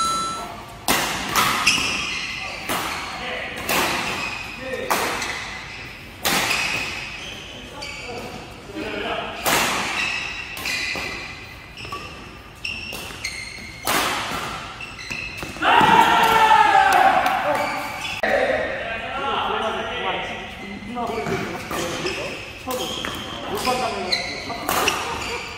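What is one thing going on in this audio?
Shuttlecock hits crack sharply off rackets in a fast rally, in an echoing hall.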